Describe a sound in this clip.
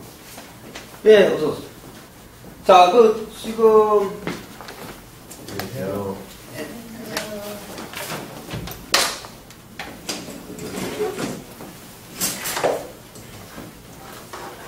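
A middle-aged man speaks calmly.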